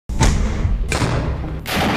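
A mortar fires with a loud boom.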